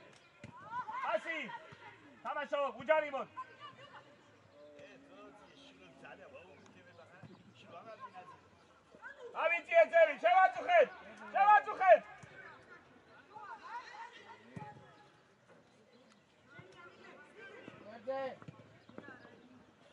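Young men shout to each other across an open outdoor field.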